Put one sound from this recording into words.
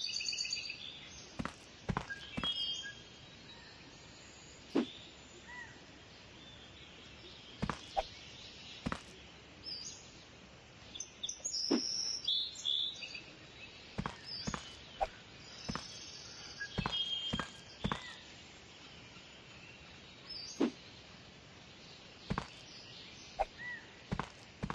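Objects are thrown and land on a hard floor with sharp thuds.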